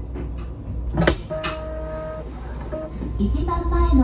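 Train brakes squeal as the train comes to a stop.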